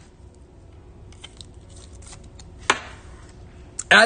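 Plastic rustles and clicks as a card is slid into a stiff sleeve.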